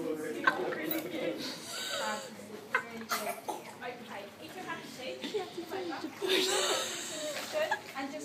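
Water splashes and laps in an echoing indoor pool.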